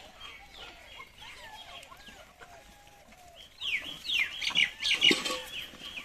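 A troop of monkeys chatters and squeals, growing louder and shriller.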